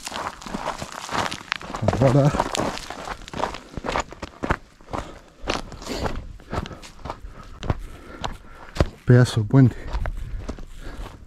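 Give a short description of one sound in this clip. Footsteps crunch on dry dirt and twigs.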